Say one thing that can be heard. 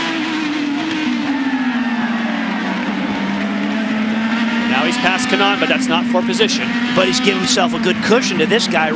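A race car engine roars at high speed, its pitch dipping and then holding steady.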